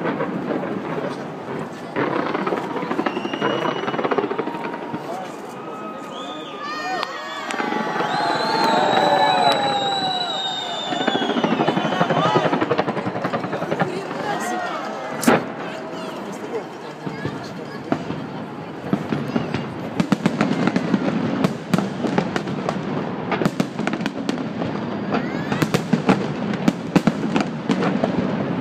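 Fireworks burst with loud booms.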